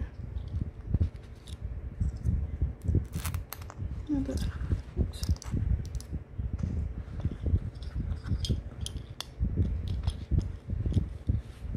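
Small metal badges click and tap as they are pressed into fabric.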